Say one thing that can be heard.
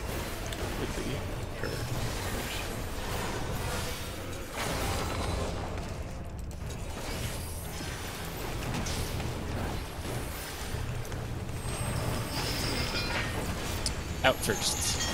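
Spell effects whoosh and burst during a battle.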